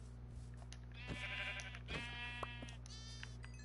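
A sheep bleats several times close by.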